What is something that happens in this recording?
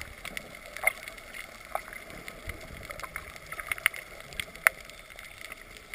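Swimmers' fins kick and splash in water, muffled underwater.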